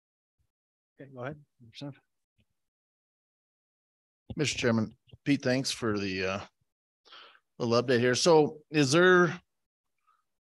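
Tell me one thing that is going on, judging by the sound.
A man speaks calmly into a microphone over an online call.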